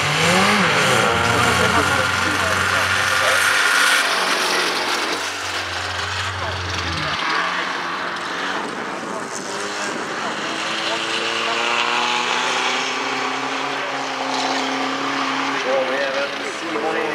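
Rally car engines roar and rev in the distance.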